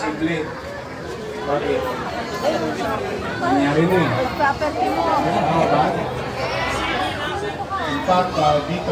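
A man speaks loudly to a crowd outdoors.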